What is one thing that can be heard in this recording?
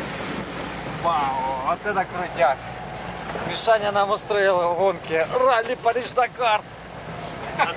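A young man laughs and talks loudly inside a car.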